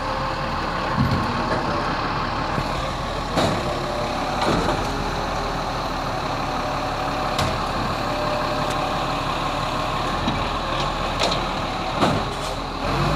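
A plastic wheelie bin knocks and clatters.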